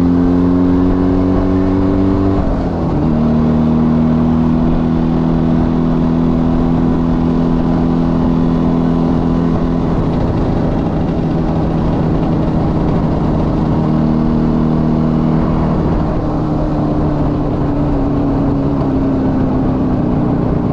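Wind rushes past a moving rider.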